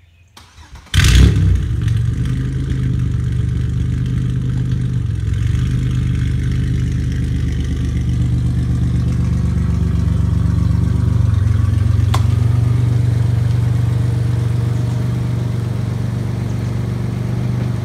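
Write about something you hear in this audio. A car engine idles with a loud, deep rumble close by.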